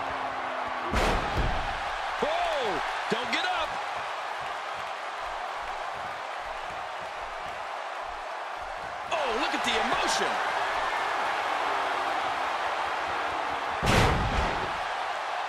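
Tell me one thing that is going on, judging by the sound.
A body slams hard onto a wrestling mat with a heavy thud.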